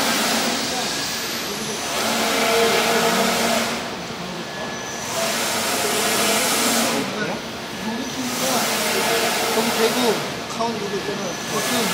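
A large printing machine runs with a loud whirring hiss that swells and fades in repeated passes.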